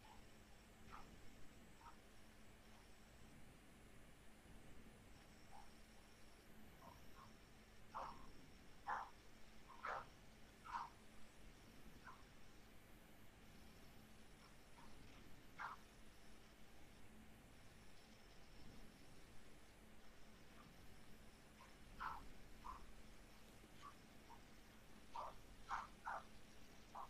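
A man speaks quietly in short, sparse bursts over an online call.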